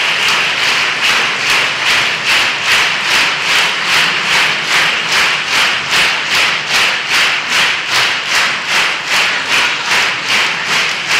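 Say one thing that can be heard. An audience claps in steady rhythm together.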